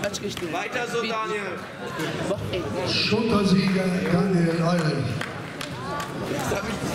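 Spectators talk among themselves in a large echoing hall.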